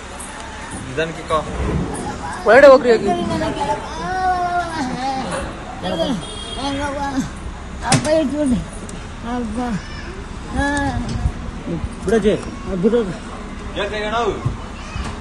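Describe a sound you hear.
An elderly woman wails and cries out in distress, close by.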